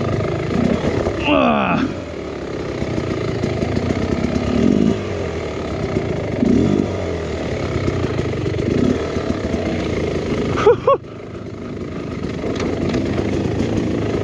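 A dirt bike engine revs and sputters up close.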